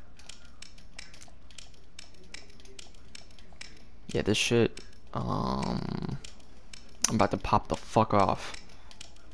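A metal dial lock clicks repeatedly as its dials are turned.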